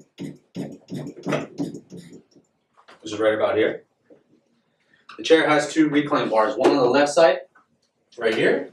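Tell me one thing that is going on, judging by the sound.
A man speaks calmly and clearly to the listener, close by.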